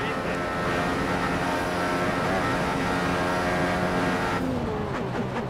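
A racing car engine screams at high revs.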